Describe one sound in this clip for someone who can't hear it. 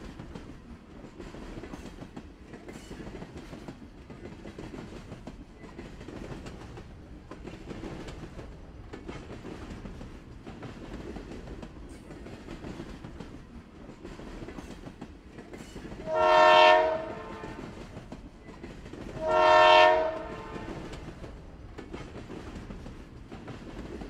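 A freight train rumbles steadily past in the distance.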